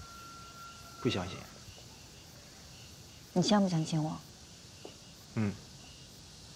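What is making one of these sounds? A young man speaks softly with a gentle tone.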